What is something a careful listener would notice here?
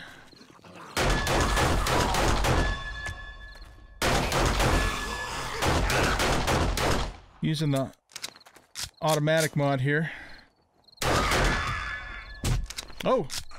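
A gun fires several shots.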